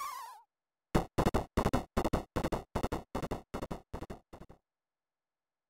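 A quick series of short electronic ticks plays, slowing down.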